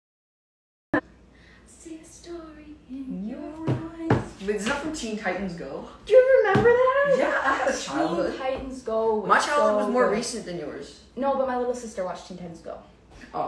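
Teenage boys talk and laugh nearby.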